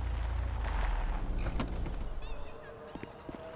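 A van engine idles and then stops.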